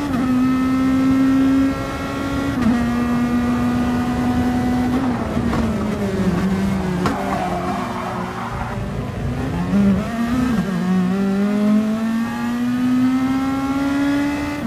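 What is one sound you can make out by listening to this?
A racing car engine roars loudly, shifting gears and dropping in pitch on braking before revving up again.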